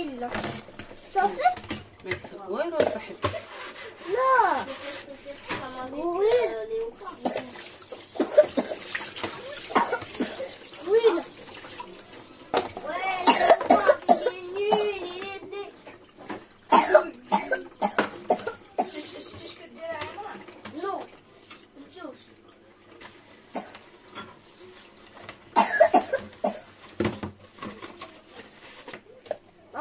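Dishes clink and clatter against each other.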